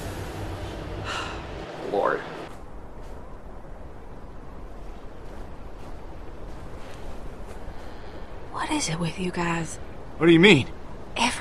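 A young woman talks casually close to a microphone.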